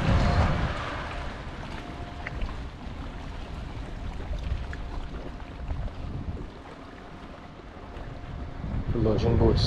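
Water laps and splashes against a pier.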